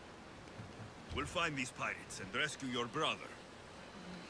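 A second man answers calmly and closely.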